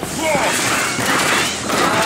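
An explosion bursts with a loud crackling blast.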